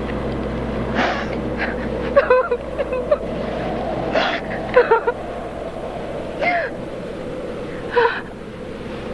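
A woman gasps and breathes heavily up close.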